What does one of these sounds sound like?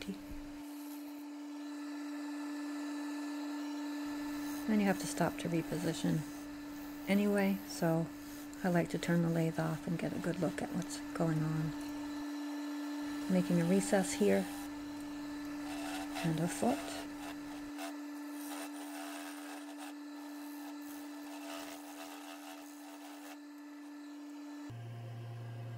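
A wood lathe motor hums as it spins.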